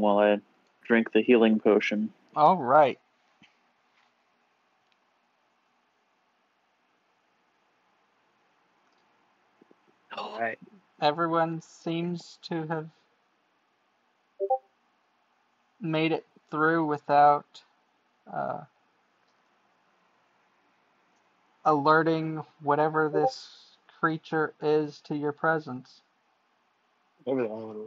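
A man speaks calmly over an online call, pausing now and then.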